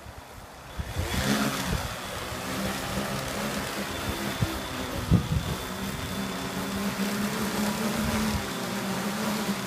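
A drone's rotors spin up and whir loudly as it lifts off and hovers.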